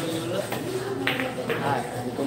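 A cue stick strikes a pool ball with a sharp click.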